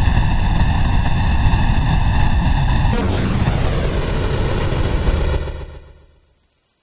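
A synthesizer plays a loud, buzzing tone whose sound sweeps and changes as knobs are turned.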